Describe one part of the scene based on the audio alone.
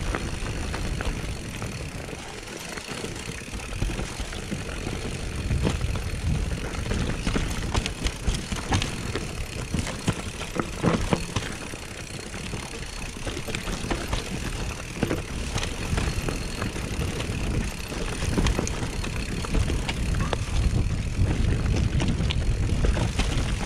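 A bicycle frame rattles and clunks over bumps.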